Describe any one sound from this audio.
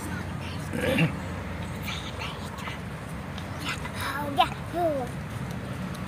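A little girl makes short, high voice sounds up close.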